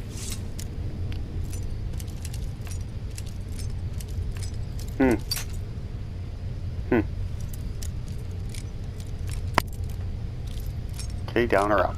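A lockpick scrapes and clicks softly inside a metal lock.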